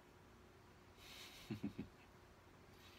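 A man gives a short breathy laugh close to a microphone.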